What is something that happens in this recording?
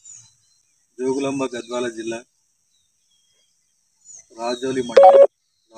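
A man speaks clearly and close by in short phrases.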